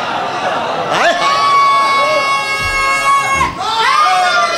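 A man chants in a drawn-out, melodic voice through a microphone.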